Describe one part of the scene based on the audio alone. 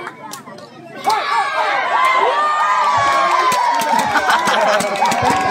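A crowd of spectators cheers loudly.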